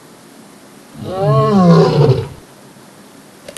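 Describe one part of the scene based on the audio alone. A lion roars loudly.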